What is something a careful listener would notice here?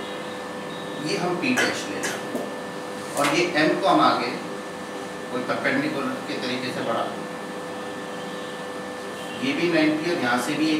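A middle-aged man speaks calmly, as if explaining.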